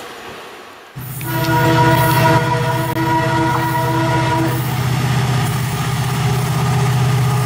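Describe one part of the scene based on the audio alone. A diesel locomotive rumbles steadily nearby.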